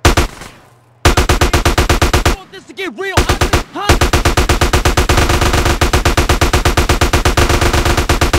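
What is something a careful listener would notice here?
A submachine gun fires rapid, steady bursts.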